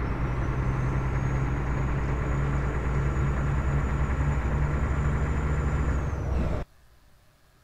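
A truck engine drones steadily, then cuts off.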